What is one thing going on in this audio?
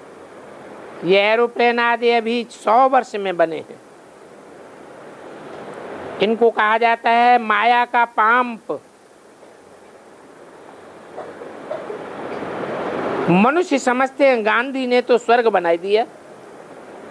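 An elderly man chants verses in a slow, sung voice, pausing between lines.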